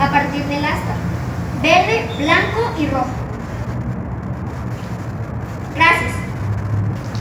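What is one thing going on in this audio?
A girl speaks into a microphone over a loudspeaker, outdoors.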